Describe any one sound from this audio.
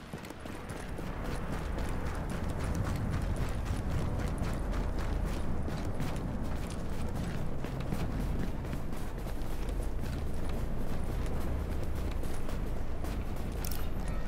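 Wind roars in a snowstorm.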